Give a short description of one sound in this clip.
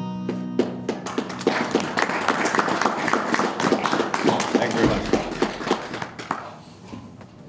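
A harmonica plays loudly in a live room.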